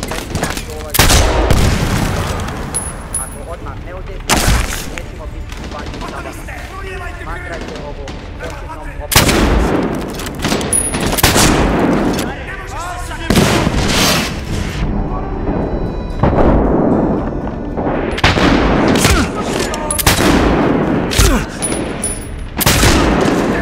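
A sniper rifle fires single loud shots.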